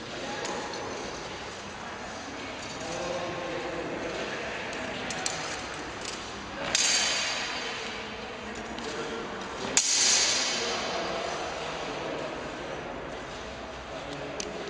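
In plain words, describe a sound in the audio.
Fencing blades clash and clatter in an echoing hall.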